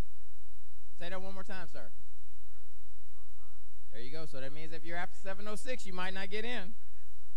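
A middle-aged man speaks calmly into a microphone, heard through a loudspeaker, with pauses between phrases.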